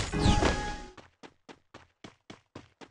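Footsteps patter quickly over the ground.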